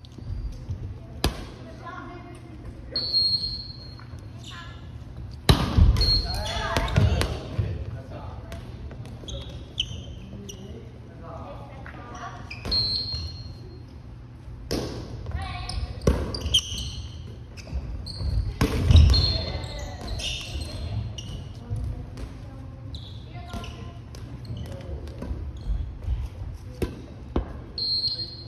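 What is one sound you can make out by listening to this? Several young adults call out and shout to each other.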